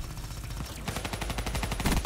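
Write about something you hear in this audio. Gunfire from an automatic weapon bursts rapidly.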